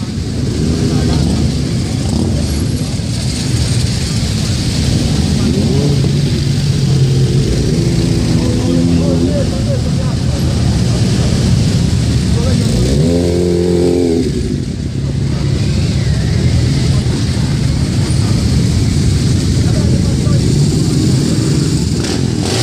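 Many motorcycle engines rumble and idle close by.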